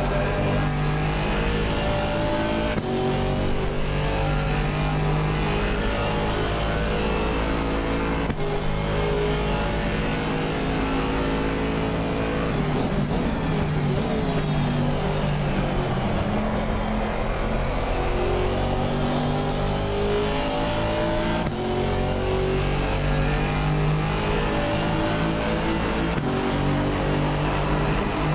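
A racing car engine roars steadily, its pitch climbing and dropping as the car speeds up and slows down.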